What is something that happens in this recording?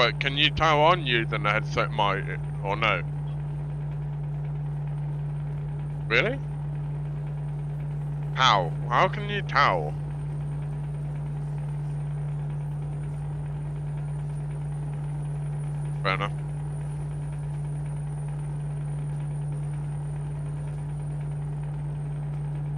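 A truck engine drones steadily.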